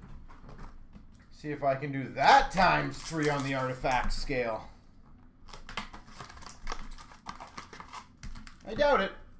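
Hands handle a small boxed package, which rustles and taps.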